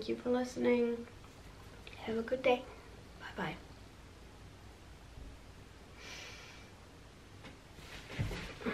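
A young woman speaks calmly and close by, with pauses.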